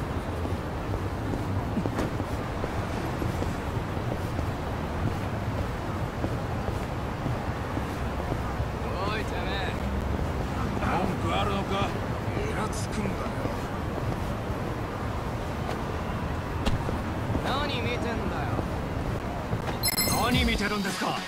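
Footsteps run quickly on pavement.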